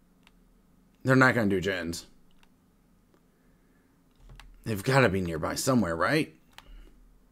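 A man talks with animation close into a headset microphone.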